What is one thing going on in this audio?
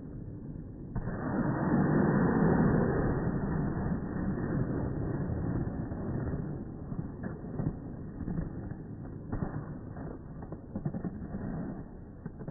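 Ice skates scrape and carve across ice.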